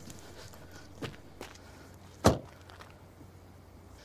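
A car door shuts.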